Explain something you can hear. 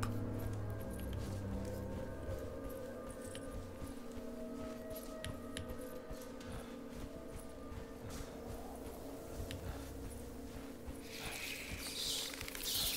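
Footsteps crunch on dry ground at a steady walking pace.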